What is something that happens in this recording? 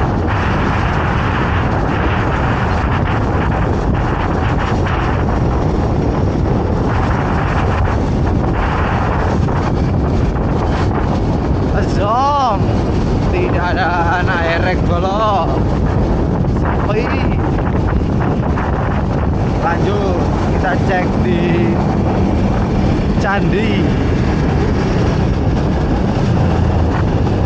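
Wind roars loudly past a moving motorcycle.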